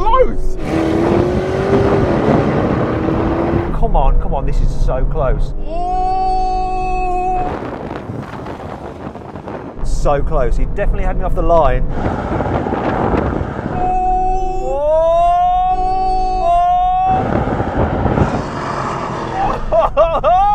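A car engine revs hard and roars as it accelerates.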